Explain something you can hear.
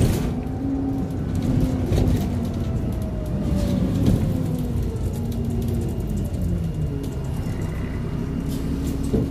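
A bus engine rumbles and whines steadily up close.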